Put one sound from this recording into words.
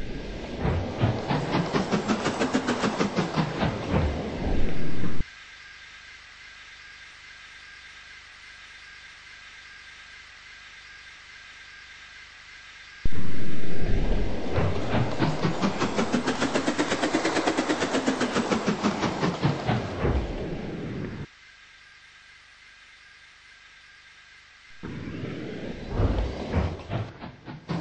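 A steam engine chuffs rapidly as it rushes past close by, then fades.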